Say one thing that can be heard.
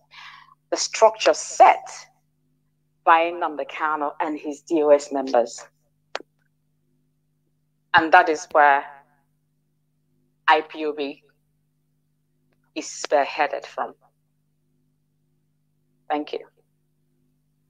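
A woman speaks over an online call in short phrases with pauses.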